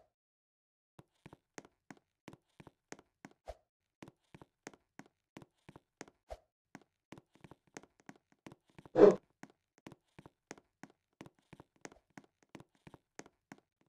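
Quick footsteps patter steadily on gravel.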